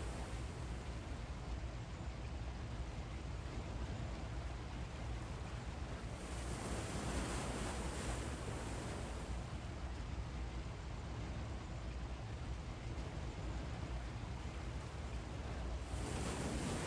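Waves wash steadily against a ship's hull at sea.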